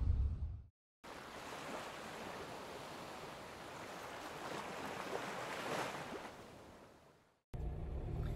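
Sea waves wash against rocks below.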